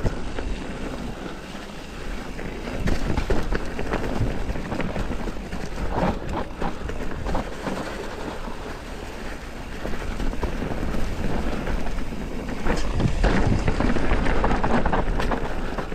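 Wind rumbles past the rider.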